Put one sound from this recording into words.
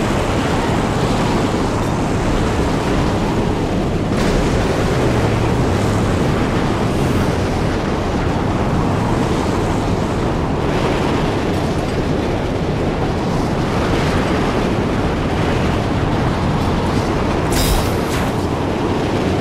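A car engine roars steadily as the car drives fast over rough ground.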